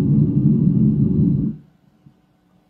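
Fingers rub and bump against a microphone up close.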